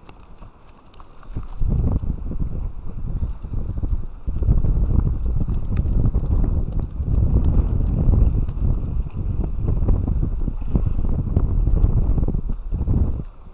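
A net of fish rustles and drags over dry grass.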